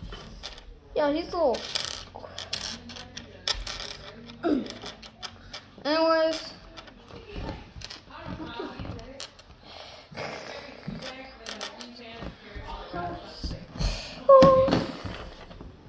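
A young boy talks casually, close by.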